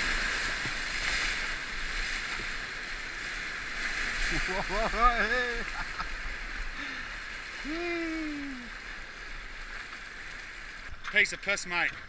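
White water rushes and roars loudly around a canoe.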